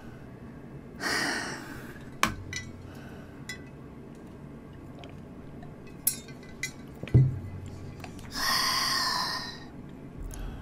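A young woman sighs heavily into a microphone.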